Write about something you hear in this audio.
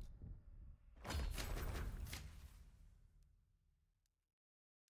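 A game menu plays a deep, booming reward sound that slowly fades.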